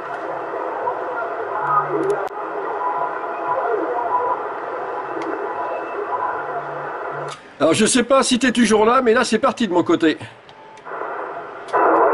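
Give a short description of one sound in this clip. A radio receiver hisses with steady static.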